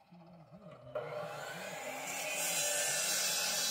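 A power saw whines as it cuts through stone.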